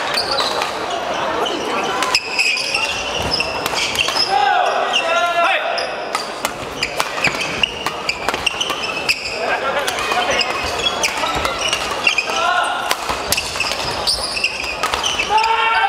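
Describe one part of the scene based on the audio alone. Shoes squeak sharply on a hard court floor.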